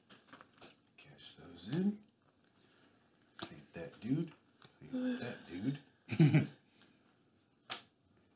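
Playing cards tap and slide on a wooden table.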